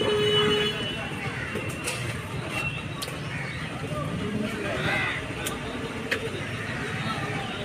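A knife cuts and taps against meat on a table.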